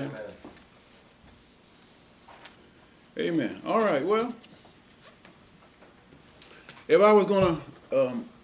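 An elderly man preaches with emphasis into a microphone, with pauses between phrases.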